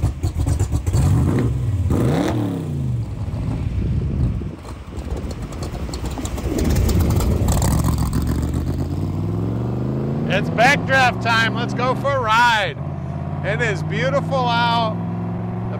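A car engine revs up and roars as the car accelerates away.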